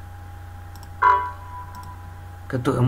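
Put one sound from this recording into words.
A computer warning chime sounds once.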